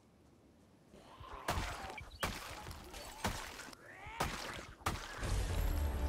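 Heavy blows thud against bodies in a scuffle.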